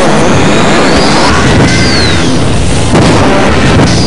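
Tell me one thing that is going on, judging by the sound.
An energy beam crackles and hums.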